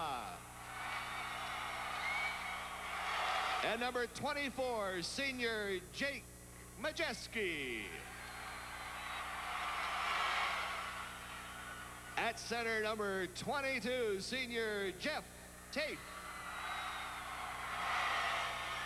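A large crowd cheers and claps in an echoing arena.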